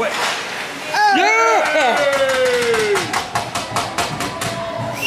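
Young players shout and cheer after a goal.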